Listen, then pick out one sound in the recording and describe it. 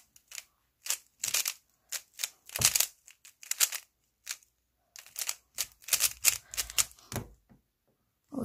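Plastic puzzle cube pieces click and clack rapidly as they are twisted.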